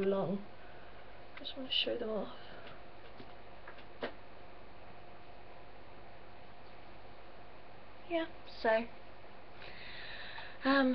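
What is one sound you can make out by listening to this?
A young woman speaks briefly and casually, close by.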